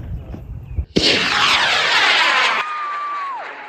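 A rocket launches with a sudden loud roar.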